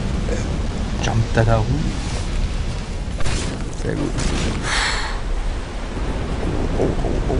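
A sword clashes and thuds in combat.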